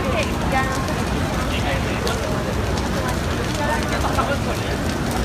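A large bonfire roars and crackles.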